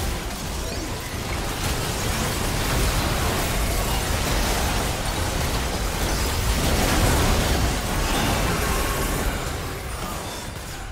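Spell blasts and hits crackle and boom in a fast game battle.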